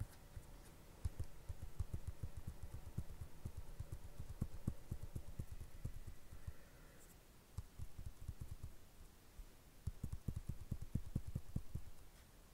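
Footsteps thud softly and quickly on grass.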